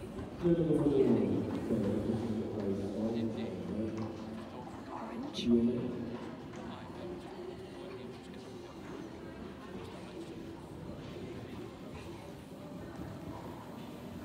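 A horse canters with soft, dull hoofbeats on sand.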